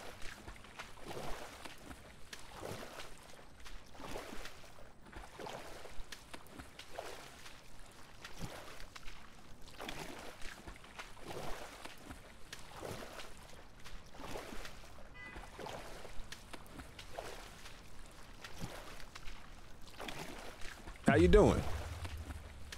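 A swimmer splashes through open water with regular strokes.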